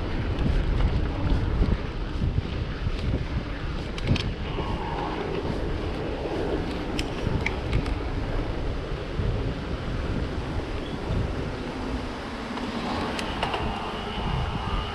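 A bicycle rattles and clicks over bumps in the road.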